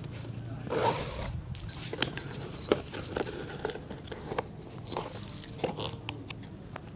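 Thread is pulled through leather with soft rasping tugs.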